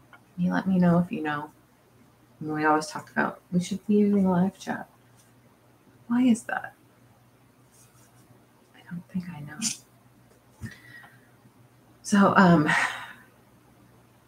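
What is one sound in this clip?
A middle-aged woman talks calmly and close by, in short bursts with pauses.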